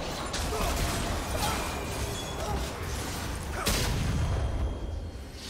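Spell effects in a video game whoosh and crackle during a fight.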